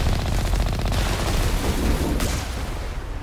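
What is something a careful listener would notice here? A cannon fires with a loud bang.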